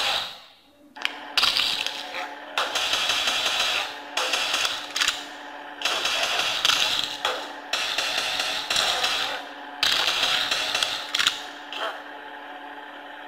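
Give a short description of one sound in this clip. A racing game's car engine roars through a small phone speaker.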